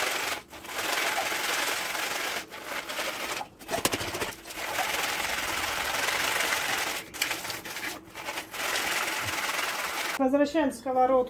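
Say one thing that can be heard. Nuts rattle and shake in a plastic colander.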